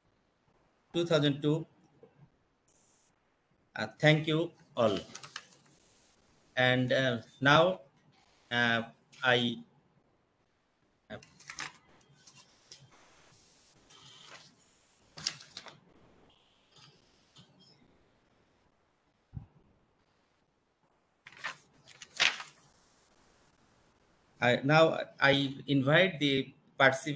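A man speaks calmly in bursts over an online call.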